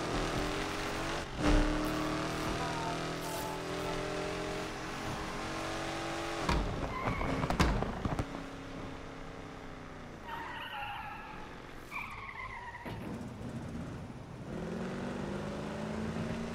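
A car engine roars loudly, rising and falling as gears shift.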